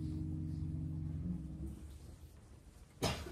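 A concert harp is plucked, its notes ringing and fading.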